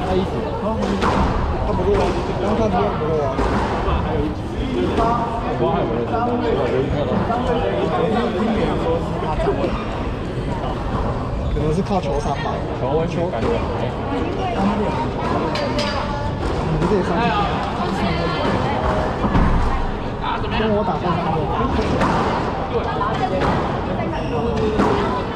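A squash ball smacks against a wall and echoes around the court.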